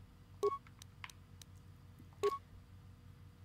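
Short electronic menu beeps chime.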